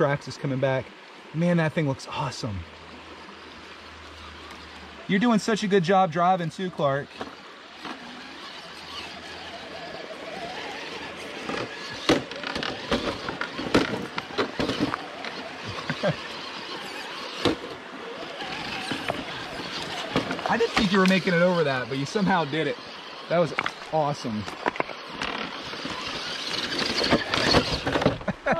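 A shallow river babbles steadily nearby.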